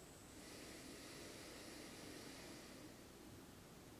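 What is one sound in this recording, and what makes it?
A man speaks softly and calmly nearby.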